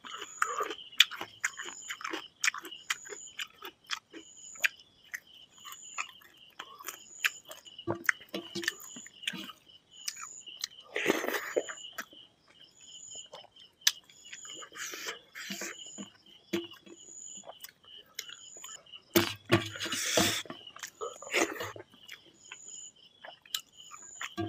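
A man chews food noisily, close by.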